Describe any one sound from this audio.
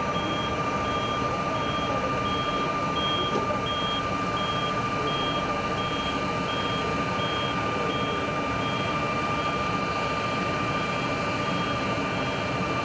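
A forklift engine rumbles steadily as it drives slowly.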